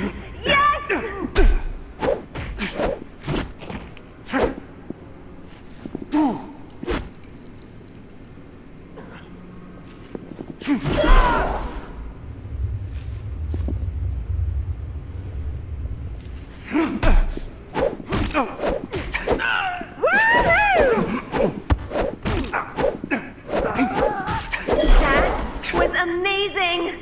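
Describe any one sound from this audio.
A baseball bat thuds against bodies in blow after blow.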